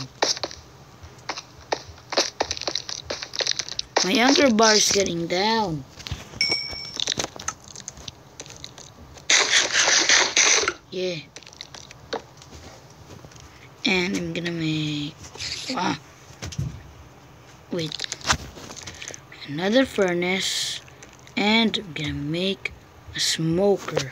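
Fingers tap on a phone's touchscreen.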